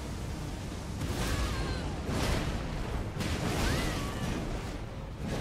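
Fire bursts and crackles in loud blasts.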